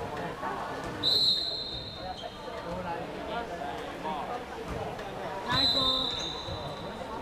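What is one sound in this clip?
A referee blows a whistle sharply in an echoing hall.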